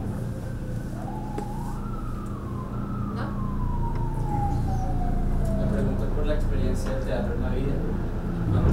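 A woman speaks through a microphone.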